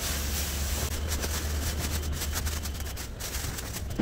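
A plastic sheet rustles and crinkles.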